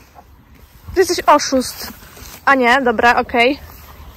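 A horse whinnies softly nearby.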